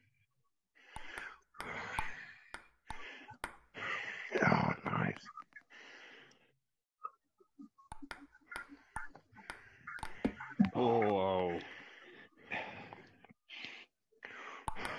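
A table tennis ball clicks sharply against a table and paddles.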